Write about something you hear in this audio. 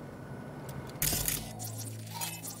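A game's scanning mode switches on with a whoosh.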